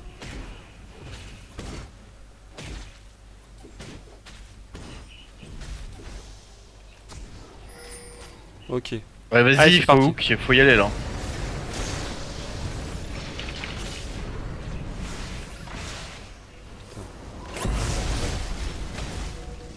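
A lightning bolt cracks.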